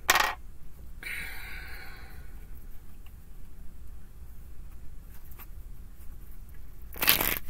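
Cards shuffle and slide against each other.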